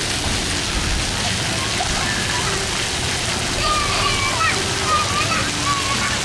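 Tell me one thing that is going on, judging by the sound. Water pours down from an overhead bucket.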